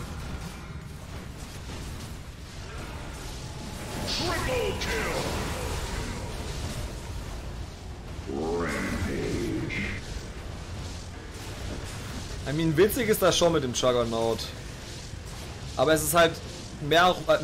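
Game sound effects of spells and hits play quietly.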